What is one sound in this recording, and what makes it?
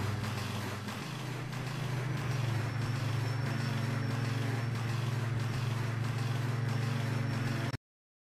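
A car engine idles with a steady, low rumble.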